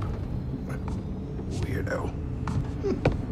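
A young man grunts as he wakes.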